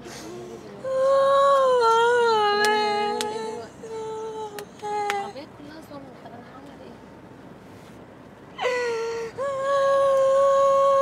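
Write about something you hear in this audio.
A young woman speaks loudly and with animation nearby.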